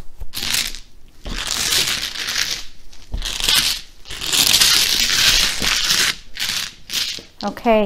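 Plastic tiles clatter and rattle as hands shuffle them on a table.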